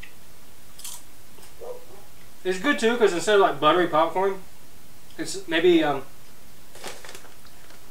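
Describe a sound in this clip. A young man chews food with a crunch.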